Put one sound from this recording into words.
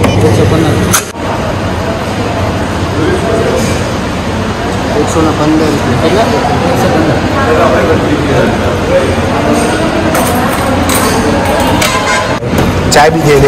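Men talk and murmur nearby in a busy room.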